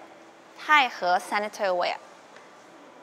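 A young woman speaks brightly and with animation, close to the microphone.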